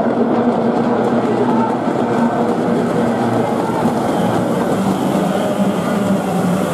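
Water splashes and hisses under speeding boats.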